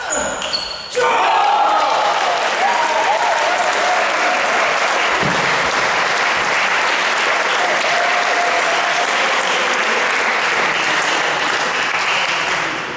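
A crowd applauds and cheers in a large echoing hall.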